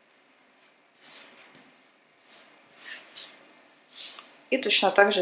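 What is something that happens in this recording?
Hands rustle and smooth cloth on a table.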